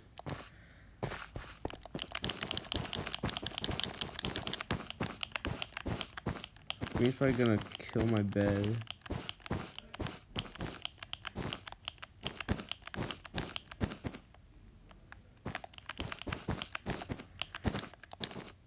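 Blocks are placed with rapid soft clicks.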